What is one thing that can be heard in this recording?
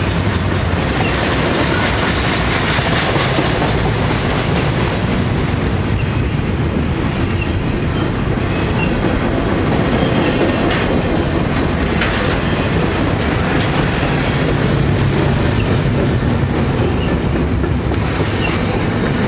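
Train wheels click and squeal on the rails.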